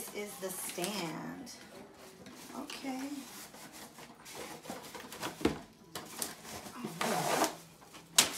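Cardboard scrapes and rustles as a box is opened.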